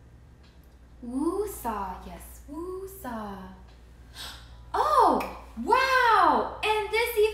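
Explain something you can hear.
A young woman talks with animation, close by.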